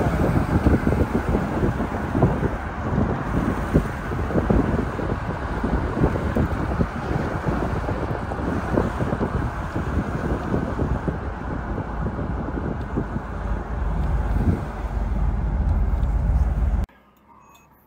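Tyres rumble steadily on the road from inside a car.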